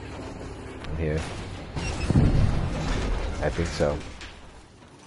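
A tank gun fires with a loud boom.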